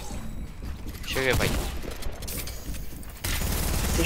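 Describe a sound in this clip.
A pistol fires several quick shots.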